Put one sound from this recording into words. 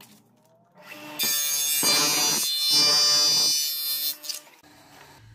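A power tool whirs loudly as it cuts into plastic.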